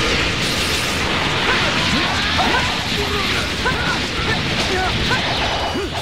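Energy blasts roar and crackle loudly.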